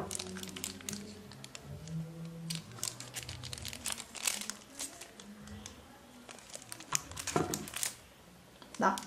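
Plastic wrap crinkles and rustles as it is handled.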